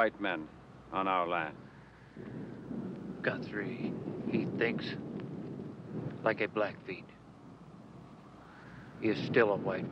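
A man speaks calmly and firmly nearby, in short phrases with pauses.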